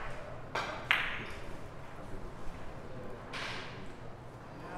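Billiard balls click against each other and thud off the cushions.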